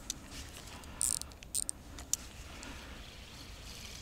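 A fishing rod swishes through the air in a cast.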